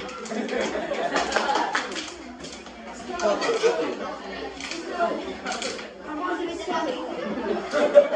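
Teenage boys laugh loudly.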